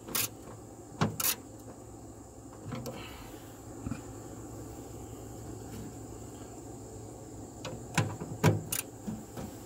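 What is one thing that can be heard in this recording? Metal tools clink and knock against metal.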